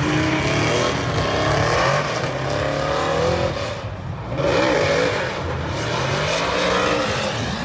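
Tyres screech as a car drifts around a track.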